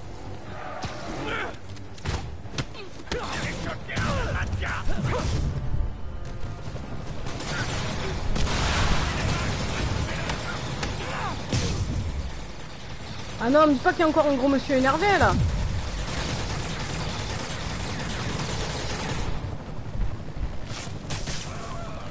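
Punches and blows land in quick bursts.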